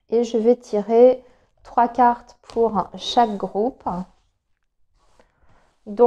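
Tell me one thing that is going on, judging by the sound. Playing cards slide and rustle as they are spread across a cloth.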